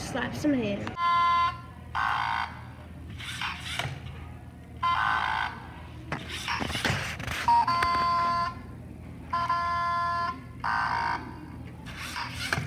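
A small toy robot motor whirs in short, repeated bursts.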